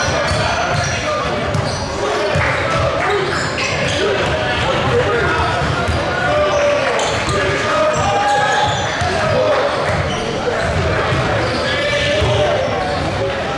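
Basketballs bounce on a wooden floor in a large echoing gym.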